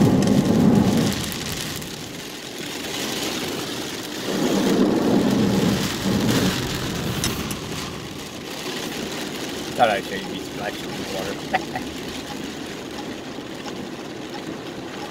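Rain patters steadily on a car windshield.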